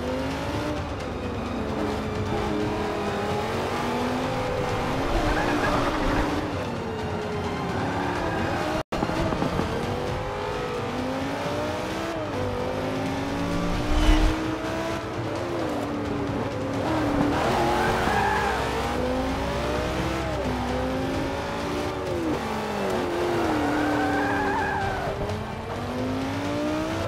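A race car engine roars and revs up and down through the gears.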